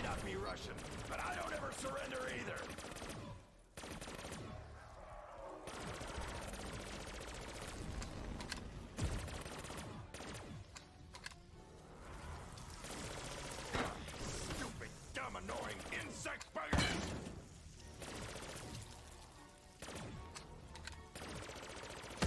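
A gun fires energy blasts in quick bursts.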